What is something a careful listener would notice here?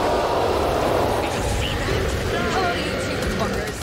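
Creatures snarl and shriek close by.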